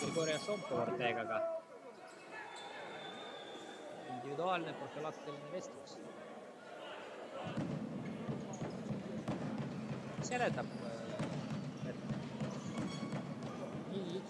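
Men talk close by among the crowd.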